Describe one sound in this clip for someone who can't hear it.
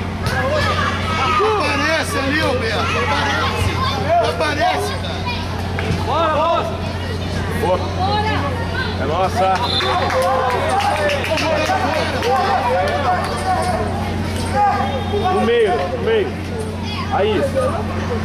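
A crowd of spectators chatters and shouts nearby outdoors.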